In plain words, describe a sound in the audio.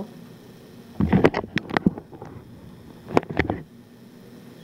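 A metal pot clanks and knocks on a stovetop.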